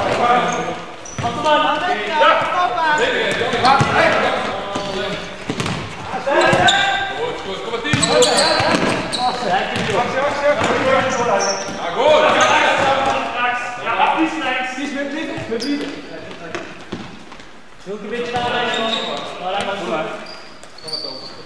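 A ball thumps as it is kicked, echoing in a large hall.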